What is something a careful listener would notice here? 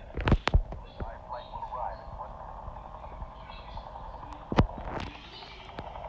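A motorboat engine starts and hums steadily.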